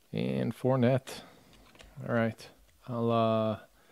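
Trading cards rustle and slide as hands sort through them.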